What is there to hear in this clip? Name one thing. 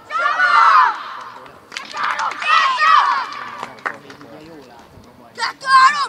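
Children shout and cheer loudly outdoors.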